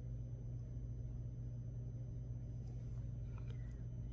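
A small metal ornament taps softly as it is set down on a hard surface.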